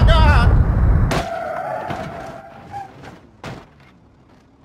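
Cars crash together with a heavy metallic crunch.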